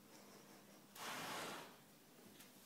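A horse blows out sharply through its nostrils close by.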